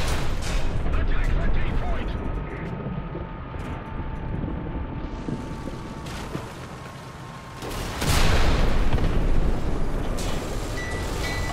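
Tank treads clatter over rubble.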